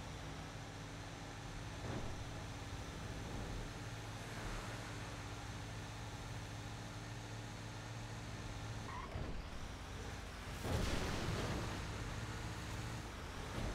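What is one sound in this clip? A truck's tyres rumble over a dirt road.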